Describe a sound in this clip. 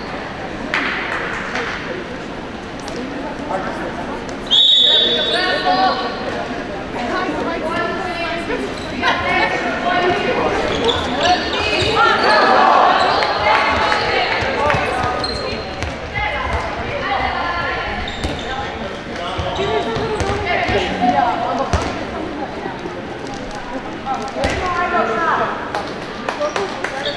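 Young girls shout and call out across a large echoing hall.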